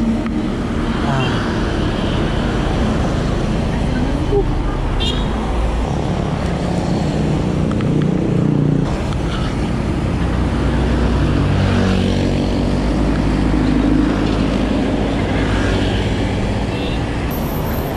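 Wind rushes steadily past while cycling outdoors.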